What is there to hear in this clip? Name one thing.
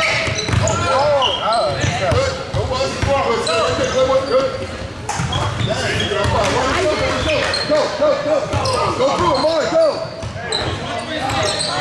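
A basketball bounces with dull thumps as it is dribbled.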